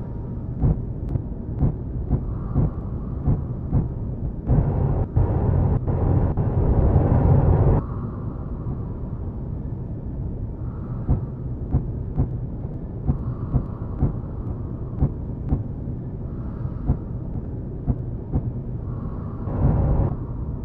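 A heavy machine rumbles low and steady.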